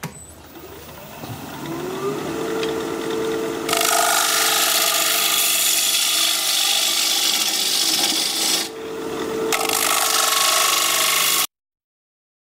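A lathe motor hums as it spins up and runs steadily.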